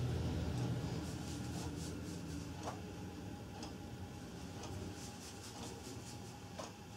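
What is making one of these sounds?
Hair rustles and swishes as hands twist and pin it up close by.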